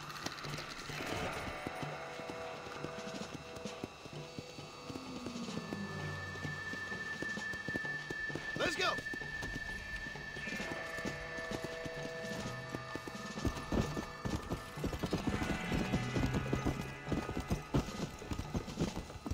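A horse gallops with hooves thudding on a dirt track.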